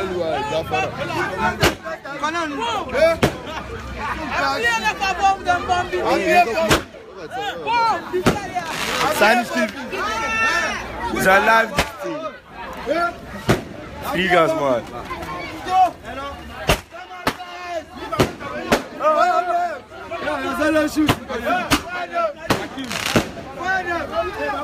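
A crowd chatters loudly outdoors.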